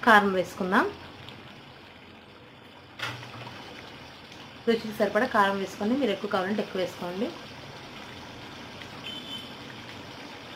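Thick curry bubbles and simmers softly in a pan.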